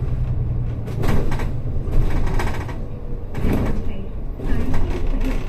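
A bus rattles as it moves.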